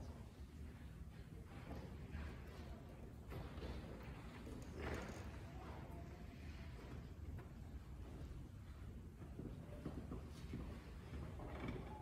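Footsteps walk slowly across a quiet, echoing hall.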